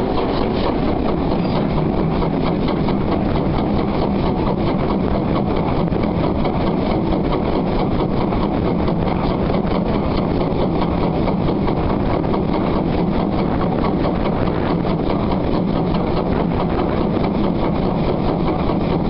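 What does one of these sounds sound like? A steam locomotive chuffs rapidly and loudly up close.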